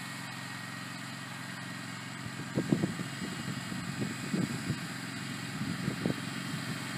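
A small motor mower hums steadily across grass outdoors.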